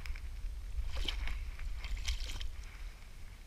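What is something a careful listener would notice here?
Water splashes in shallows.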